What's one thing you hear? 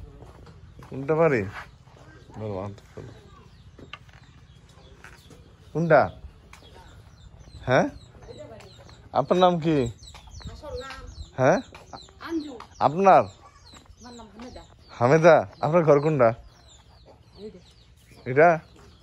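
An elderly woman speaks loudly and with animation, close by.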